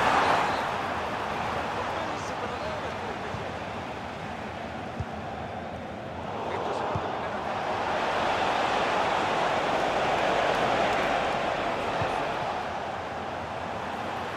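A large crowd roars and chants steadily in a stadium, swelling louder midway.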